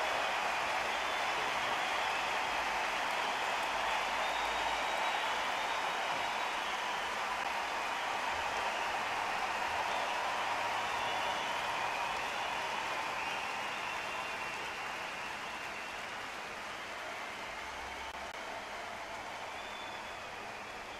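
A crowd murmurs steadily in the background and slowly fades.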